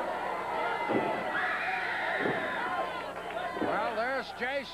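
Heavy thuds land as wrestlers hit each other.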